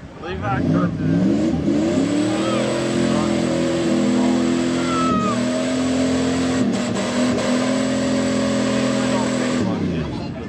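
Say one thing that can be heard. A truck engine roars and revs hard.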